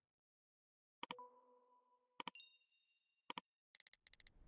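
A mouse button clicks a few times, each with a short chime.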